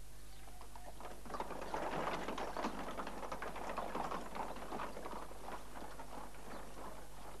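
A horse-drawn carriage rolls away over a dirt road.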